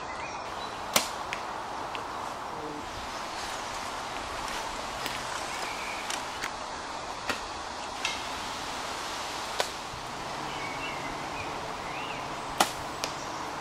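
A bow releases an arrow with a sharp snap.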